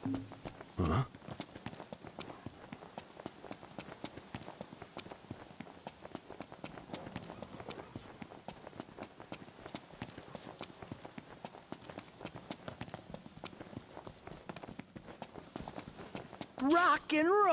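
Footsteps run quickly over dry dirt and rock.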